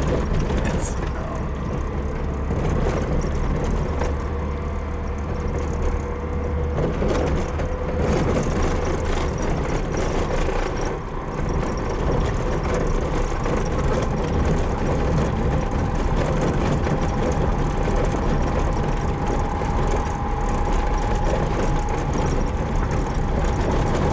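A vehicle body rattles and bumps over a rough track.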